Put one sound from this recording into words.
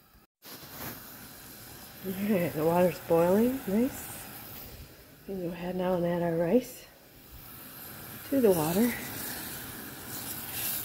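Water bubbles and boils in a pot.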